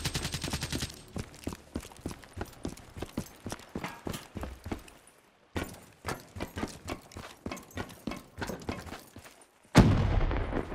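Footsteps thud quickly on the ground.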